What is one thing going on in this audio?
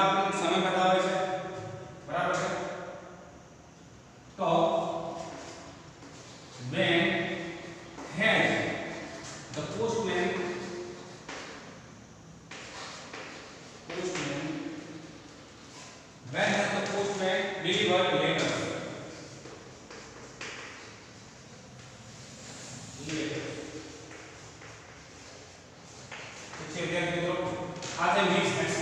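A man speaks in a teaching manner, close by in an echoing room.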